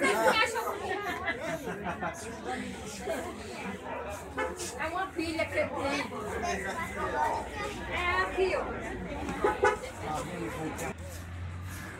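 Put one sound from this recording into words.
Several women and men talk nearby in a small, busy room.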